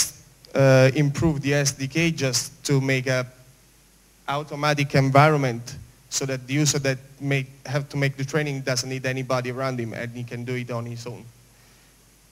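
A young man speaks calmly into a microphone.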